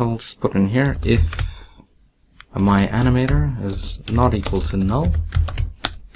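Keys clack on a computer keyboard in quick bursts.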